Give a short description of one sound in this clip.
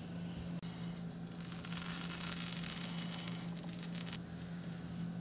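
Sand pours and patters onto a metal bar.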